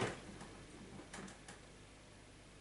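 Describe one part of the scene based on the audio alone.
Clothes thump and clatter softly inside a washing machine drum.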